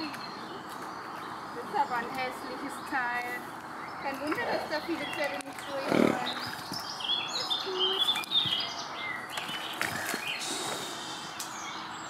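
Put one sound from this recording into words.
A woman's boots splash while wading through a shallow pond.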